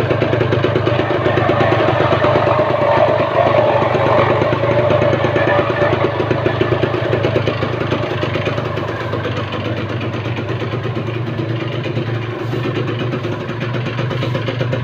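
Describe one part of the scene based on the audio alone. A motorcycle engine idles close by with a rapid, rough putter.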